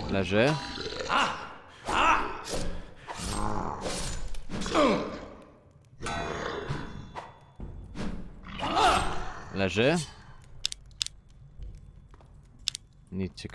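A sword clangs against armour in quick blows.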